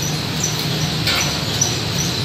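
A metal hood clunks shut over a wheel.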